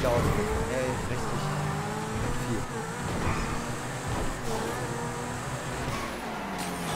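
A sports car engine roars and revs, rising and falling in pitch as the car accelerates and shifts.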